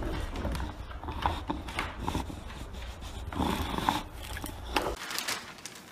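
A dog sniffs and licks its lips close by.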